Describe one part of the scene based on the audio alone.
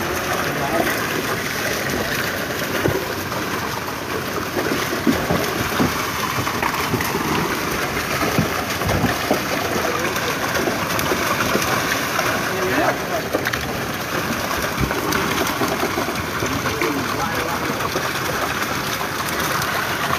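Fishermen haul a wet fishing net into a wooden boat.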